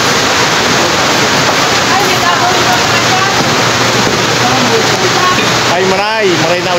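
A crowd chatters and bustles all around.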